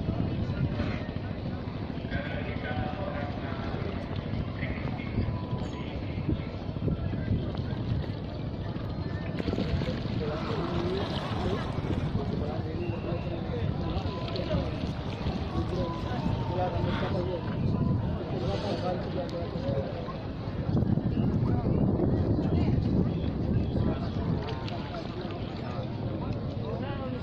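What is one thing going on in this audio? A crowd of men and women chatters and calls out at a distance outdoors.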